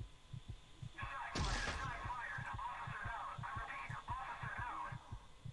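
A loud shrieking scare sound bursts out and rings on.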